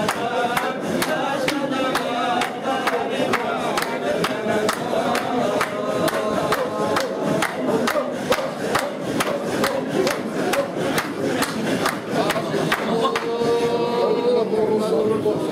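A man claps his hands in a steady rhythm.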